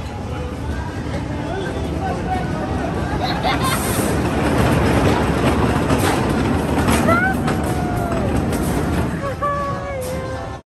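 Roller coaster cars rumble and clatter along a wooden track.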